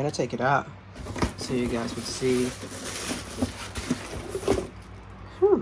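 A cardboard box scrapes and rustles as it is opened and tipped.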